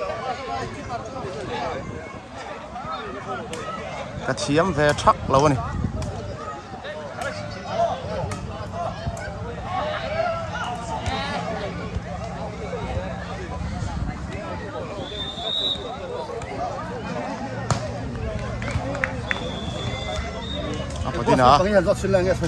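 A crowd of young men and women chatters outdoors.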